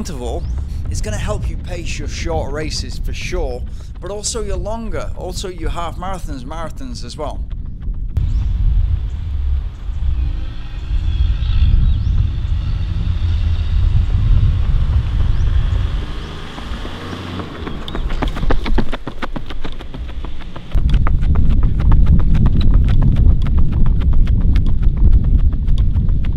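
Running footsteps patter on asphalt.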